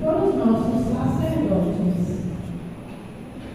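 A congregation sings together in a large echoing hall, then falls quiet.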